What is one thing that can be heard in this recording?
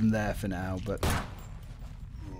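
A pistol fires twice, sharp and loud.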